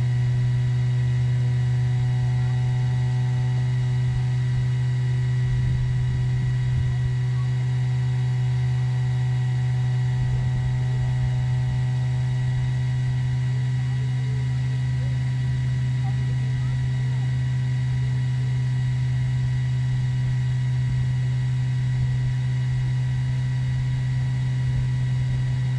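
An engine idles with a steady low hum.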